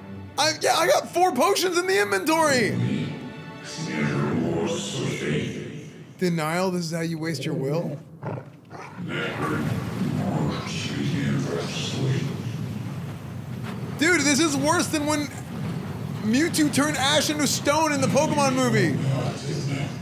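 A man exclaims with excitement close to a microphone.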